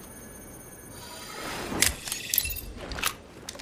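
A small electronic device whirs and clicks as it is switched on.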